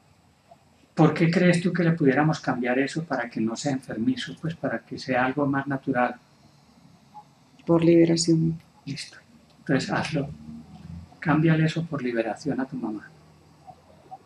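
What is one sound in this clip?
A man speaks calmly and softly close by.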